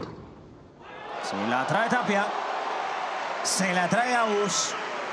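A crowd cheers and applauds loudly.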